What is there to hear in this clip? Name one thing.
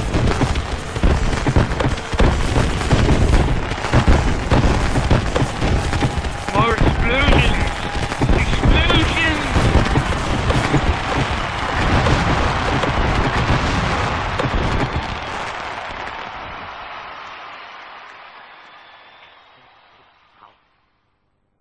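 Loud rock music plays and slowly fades out.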